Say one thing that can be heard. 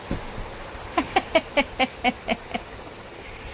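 A baby laughs in short bursts close by.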